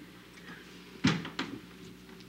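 A door clicks shut.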